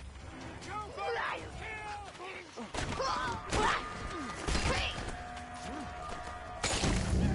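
Blows land with heavy thuds during a fist fight.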